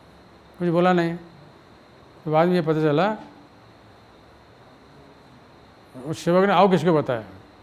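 An elderly man speaks calmly nearby, in short phrases with pauses.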